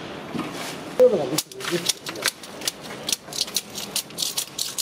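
A metal scraper scrapes and chips old paint off a wall.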